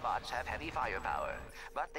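Blaster shots fire rapidly.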